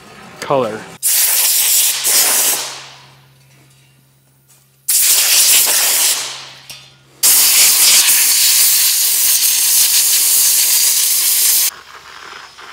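Compressed air blasts out in loud, hissing bursts.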